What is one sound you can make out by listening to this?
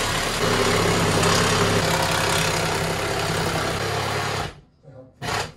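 A power drill whirs steadily close by.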